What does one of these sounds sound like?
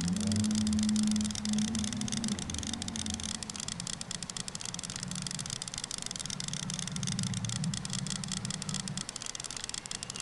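A fish splashes in water.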